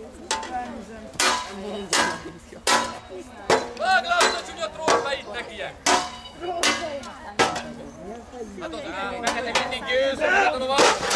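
Swords clash with sharp metallic clangs.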